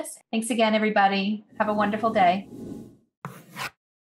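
A woman speaks warmly and with animation close to a microphone.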